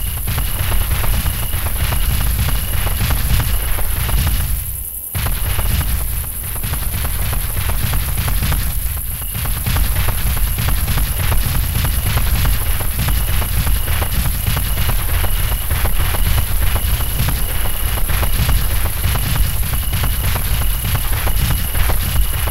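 Heavy footsteps thud steadily as a large creature walks.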